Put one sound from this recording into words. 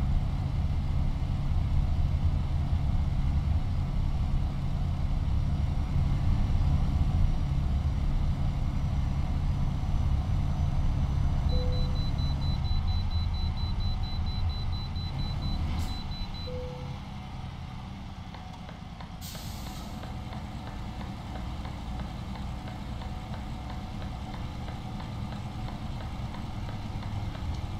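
Tyres roll steadily over the road.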